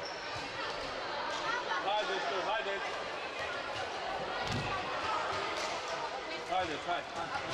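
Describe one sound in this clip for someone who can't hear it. Young women's voices chatter and call out across a large echoing hall.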